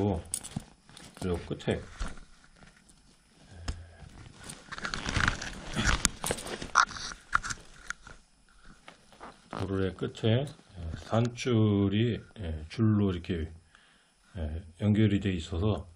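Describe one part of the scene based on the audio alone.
A plastic buckle clicks.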